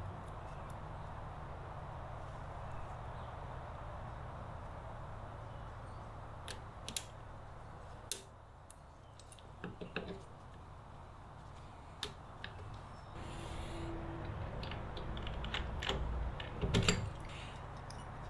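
Metal tools click and clink against engine parts.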